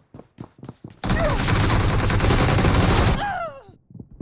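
An automatic rifle fires rapid bursts in a video game.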